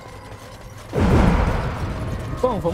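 A magical spell whooshes and shimmers loudly.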